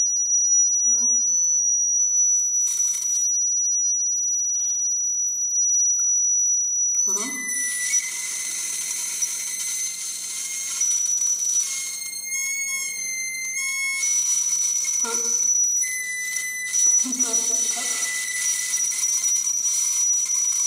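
High electronic tones hum and shift, growing dense and shimmering partway through.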